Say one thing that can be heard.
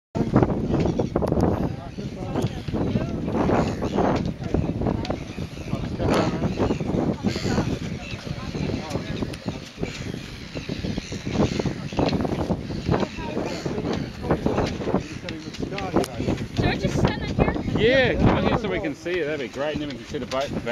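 A crowd of men and women chatter close by outdoors.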